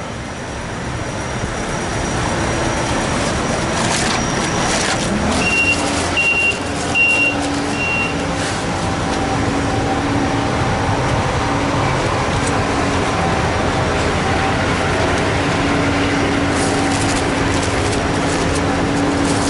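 A diesel truck engine idles nearby with a steady low rumble.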